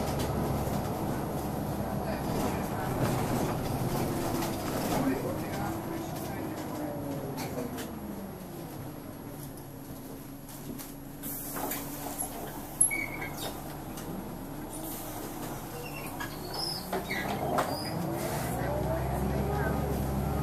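A bus engine hums and rises and falls in pitch as the bus slows down and pulls away.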